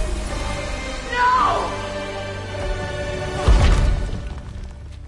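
A man cries out in anguish.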